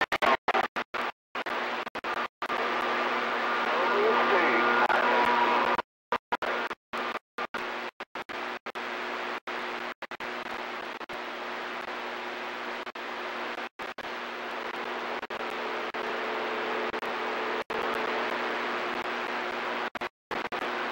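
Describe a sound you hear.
A CB radio receiver hisses with static that cuts in and out.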